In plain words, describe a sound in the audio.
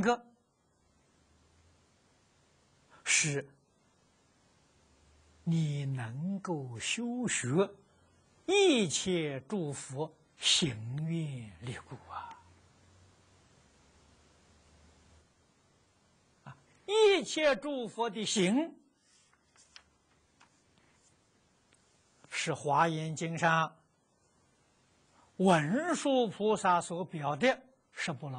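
An elderly man speaks calmly and slowly into a close microphone, in short phrases with pauses.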